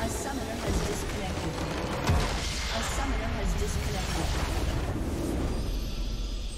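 A large explosion booms and crackles.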